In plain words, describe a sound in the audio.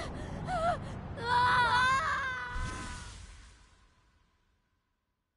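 A swirling magical tone rises and wavers, then fades into silence.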